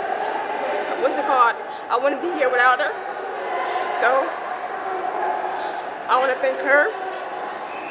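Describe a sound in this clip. A young woman speaks close to a microphone, answering with animation.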